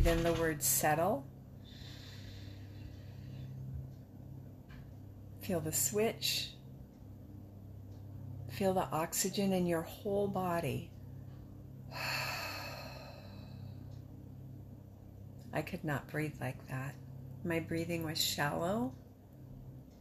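A woman speaks slowly and calmly, close by, with long pauses.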